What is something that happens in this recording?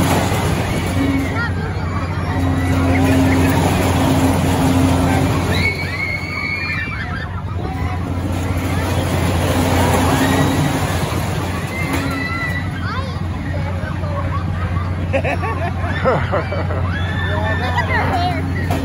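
A loop ride's cars rumble and whir around a steel track.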